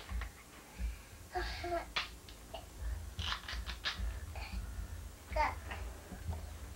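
A toddler's plastic toy clicks and rattles close by.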